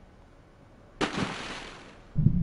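A body splashes heavily into water.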